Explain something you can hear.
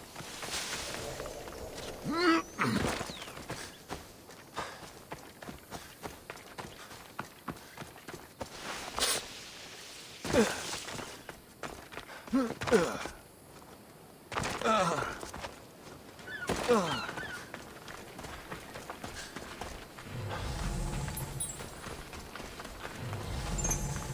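Footsteps run quickly over grass, rock and sand.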